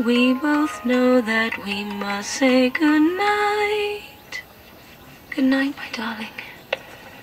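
A short electronic melody plays from a toy cassette player.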